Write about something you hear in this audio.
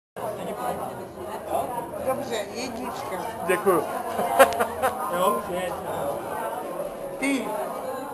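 An elderly woman talks close by.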